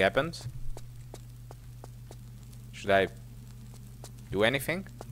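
Footsteps tap quickly and evenly on a hard stone floor.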